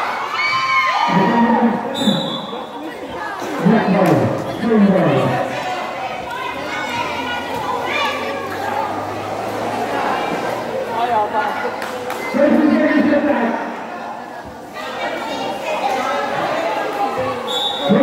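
Young men shout and call out to each other nearby.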